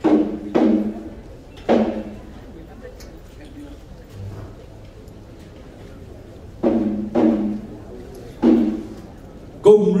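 A drum booms loudly a few times and rings out in a large hall.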